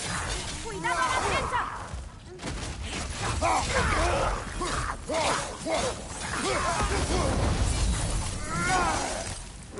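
Metal blades whoosh and slash through the air.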